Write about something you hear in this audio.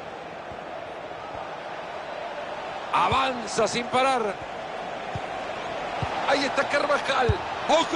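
A stadium crowd murmurs and roars steadily in the background.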